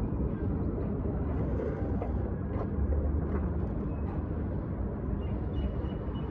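Cats chew and lap food from a bowl.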